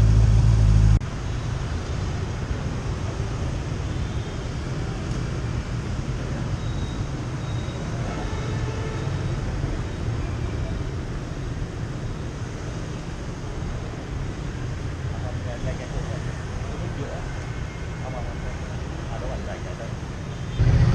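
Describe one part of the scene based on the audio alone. A motorcycle engine idles with a deep, steady rumble close by.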